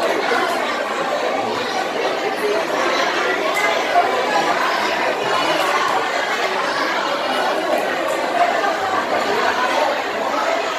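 Lively music plays through loudspeakers in a hall.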